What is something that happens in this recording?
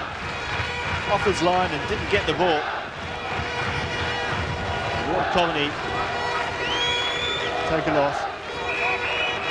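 A stadium crowd murmurs and cheers steadily in the background.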